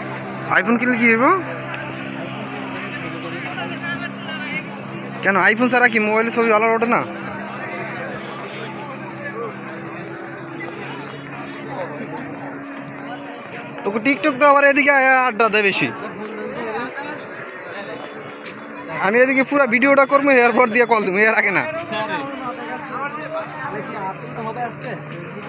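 A crowd chatters in the distance outdoors.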